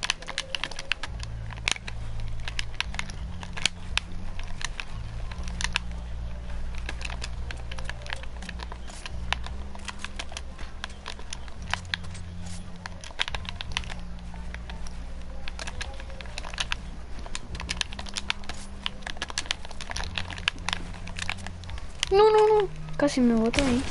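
Wooden panels clack sharply in quick succession as they are built.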